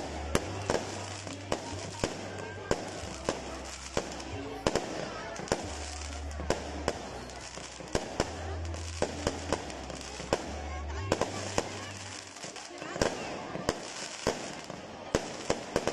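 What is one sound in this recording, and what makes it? Fireworks bang and crackle overhead in rapid bursts.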